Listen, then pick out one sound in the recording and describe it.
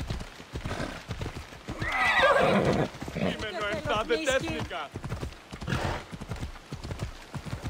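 Horse hooves thud steadily on a dirt path.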